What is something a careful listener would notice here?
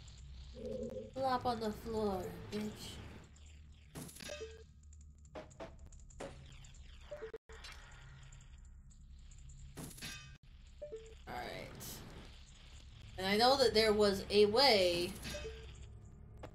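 A woman talks with animation close to a microphone.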